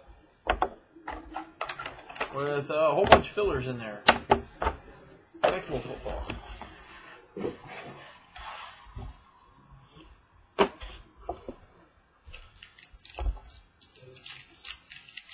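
Small boxes knock and clatter as hands set them down on a wooden table.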